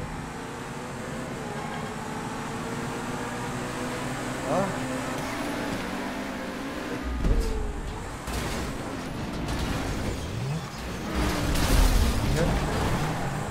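Racing car engines roar steadily.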